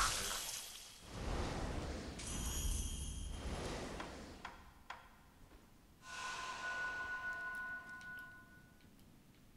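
A magical shimmering sound swells and fades in a video game.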